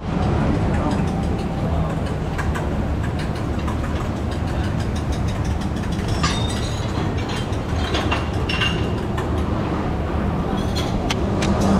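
Dishes and utensils clink and clatter nearby.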